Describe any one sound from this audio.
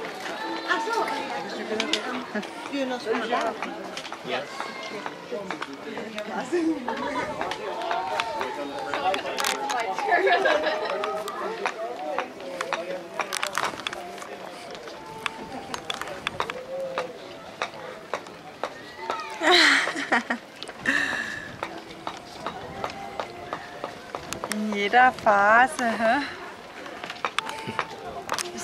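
Men and women chat nearby in a crowd outdoors.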